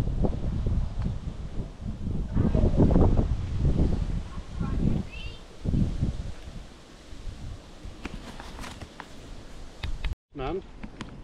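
Wind rumbles on a microphone outdoors.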